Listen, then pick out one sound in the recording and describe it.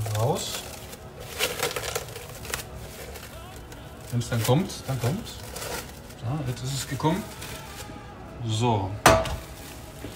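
Plastic wrap crinkles as hands press and fold it.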